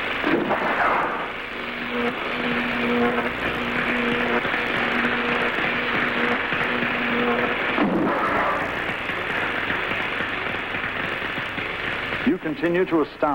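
Electricity crackles and hums loudly.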